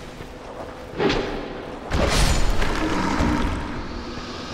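A sword strikes with a heavy metallic impact.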